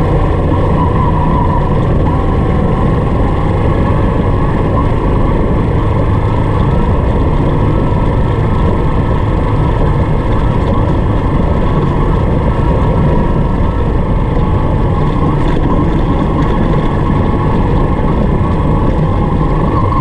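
Tyres crunch and rumble over a rough gravel track.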